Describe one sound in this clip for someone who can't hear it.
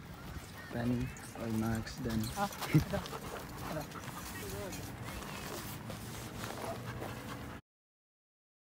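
Dogs scuffle and pant while playing outdoors.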